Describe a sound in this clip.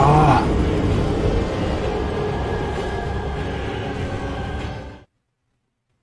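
A huge creature roars and thrashes.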